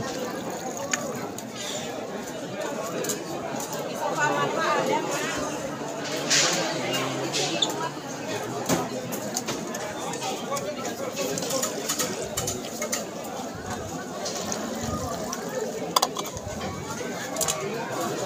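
A crowd murmurs and chatters nearby in a large echoing hall.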